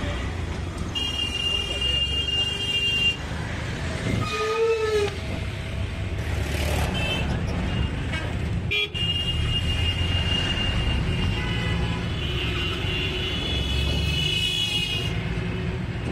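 Vehicle horns honk repeatedly nearby.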